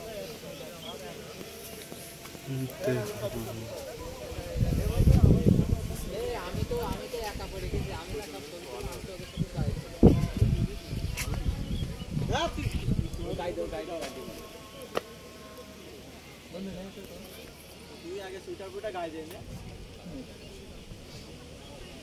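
Young men talk casually close by, outdoors.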